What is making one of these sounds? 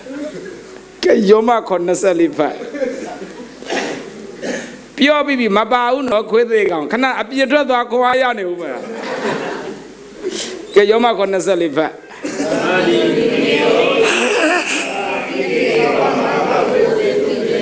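A man speaks with animation through a microphone in an echoing hall.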